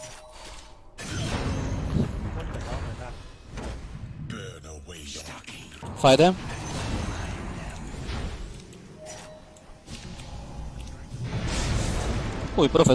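Game battle effects crash and whoosh.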